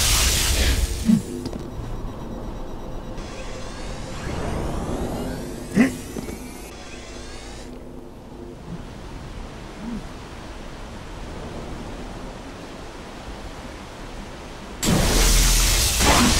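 An energy sword swings and slashes with a crackling hum.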